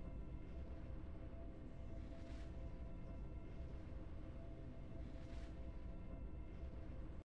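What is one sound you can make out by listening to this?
Soft game music plays steadily.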